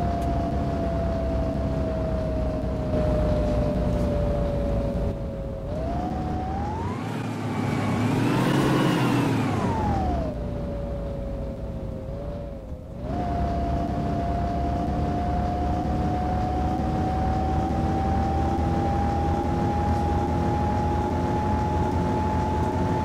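A bus engine hums steadily, its pitch rising and falling as the bus speeds up and shifts gears.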